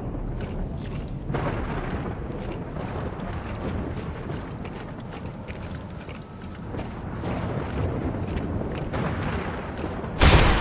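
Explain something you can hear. Heavy boots crunch through snow.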